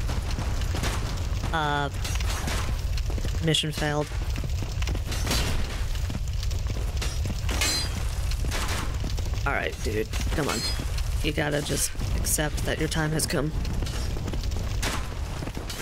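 Footsteps clatter on stone steps.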